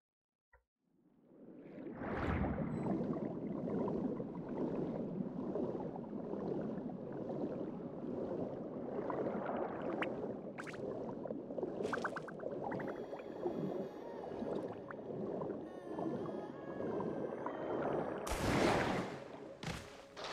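Water swirls and splashes steadily.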